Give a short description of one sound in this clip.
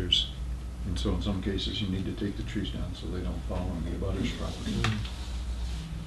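A middle-aged man speaks calmly in a quiet room.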